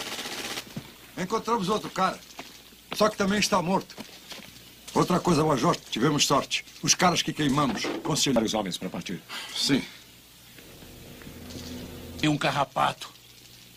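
A man speaks in a low, tense voice nearby.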